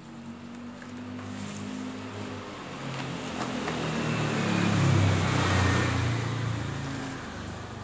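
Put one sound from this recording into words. Hands press and pat into loose potting soil.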